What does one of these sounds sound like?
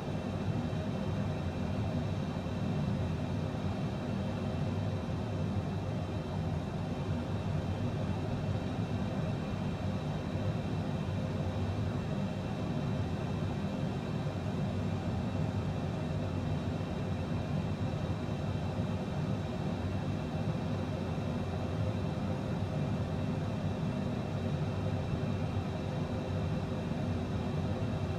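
Jet engines hum steadily inside a cockpit in flight.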